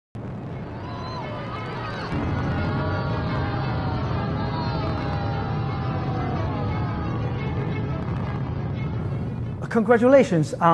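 A rocket engine roars in a deep, steady rumble.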